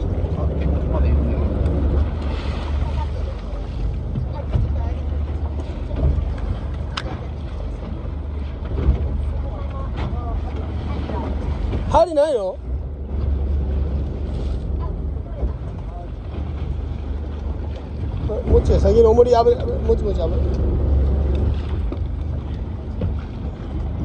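Waves splash against a boat's hull.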